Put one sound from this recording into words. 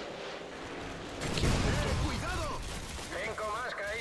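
A missile strikes with a loud, booming explosion.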